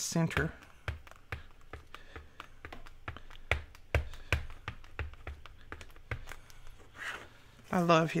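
A plastic stamp block taps and clicks against a tabletop.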